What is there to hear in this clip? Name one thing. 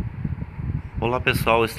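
A man speaks to the microphone with animation, close up.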